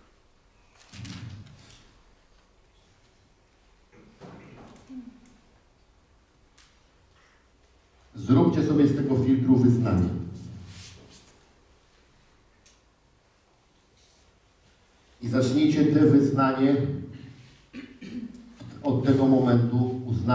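A man speaks with animation into a microphone, his voice echoing in a large hall.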